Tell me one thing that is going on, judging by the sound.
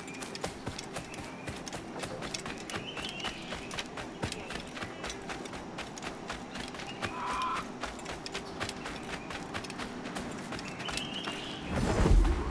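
Quick footsteps run over sand and dirt.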